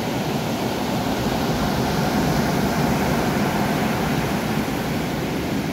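Ocean waves roll and wash steadily.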